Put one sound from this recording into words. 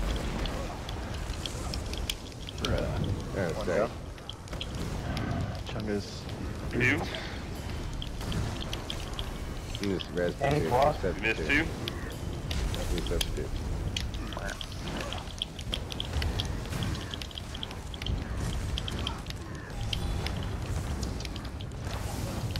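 Fire spells crackle and roar in a steady blaze.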